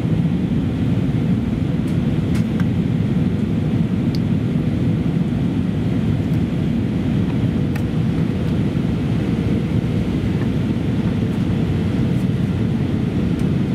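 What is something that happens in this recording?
A washing machine hums and rumbles steadily.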